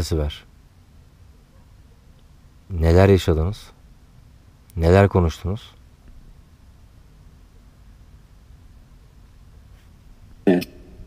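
A man speaks quietly in short bursts close by, with long silences between.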